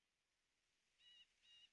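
Short electronic game chimes beep twice.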